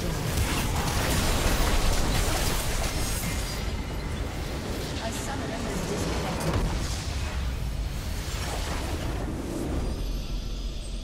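Game spell effects crash and explode in a loud battle.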